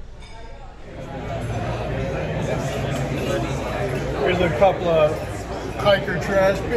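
People chatter in the background of a busy room.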